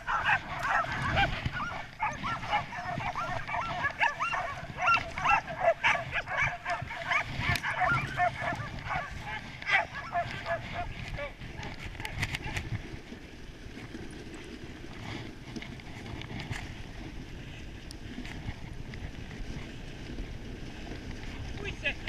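Sled runners hiss and scrape over snow.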